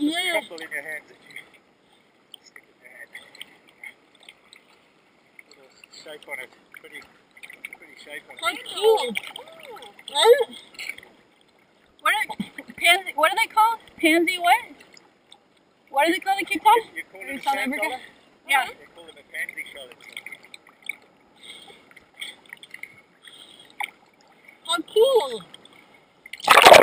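Small waves lap and splash around the swimmers.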